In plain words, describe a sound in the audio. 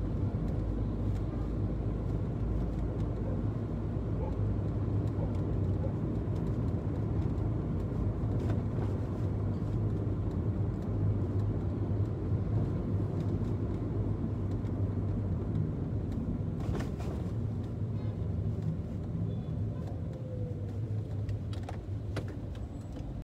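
A car engine hums steadily from inside the vehicle as it drives.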